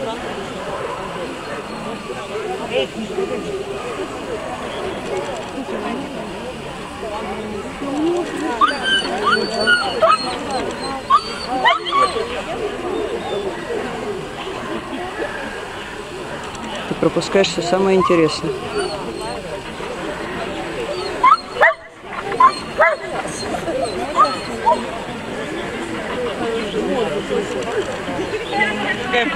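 A man gives short commands to a dog.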